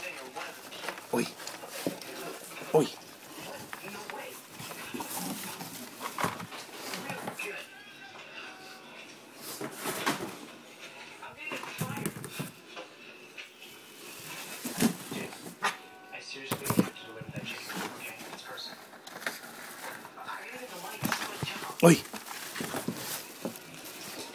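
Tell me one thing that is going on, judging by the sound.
Cardboard rustles and thumps close by as it is handled.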